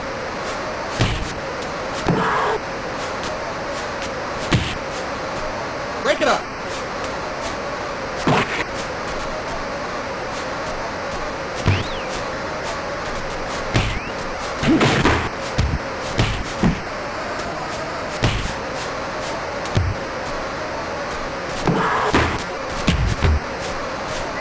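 Punches thud against a boxer again and again.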